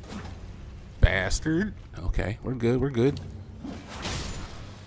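A sword swooshes and clangs in sharp strikes.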